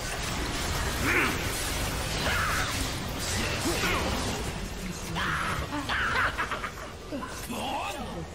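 Video game spell effects whoosh and crackle in bursts.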